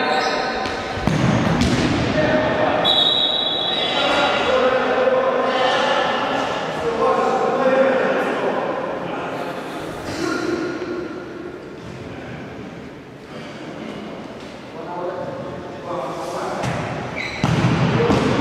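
A ball is kicked hard with a thump in an echoing hall.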